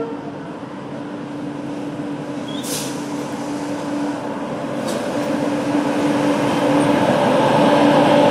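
A locomotive rumbles closer along the tracks.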